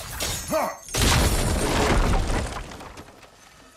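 An axe strikes a barrier with a loud burst of crackling.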